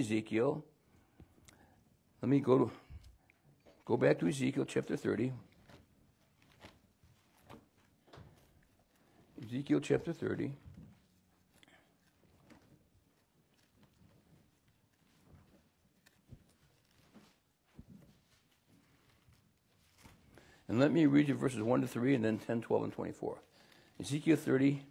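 An older man reads aloud calmly into a nearby microphone, with long pauses.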